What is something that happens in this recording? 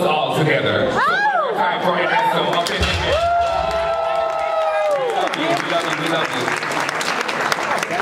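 A crowd cheers and shouts in a large room.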